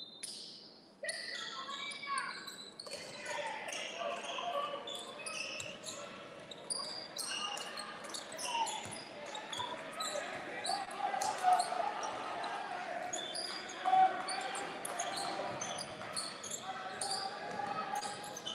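A crowd of spectators chatters and cheers in an echoing gym.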